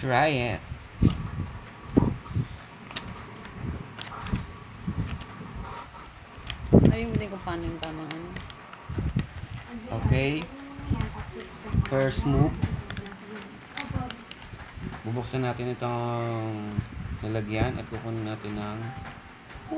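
A plastic packet crinkles and tears.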